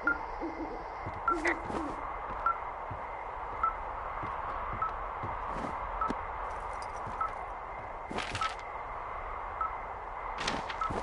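A handheld receiver beeps in short, regular pips.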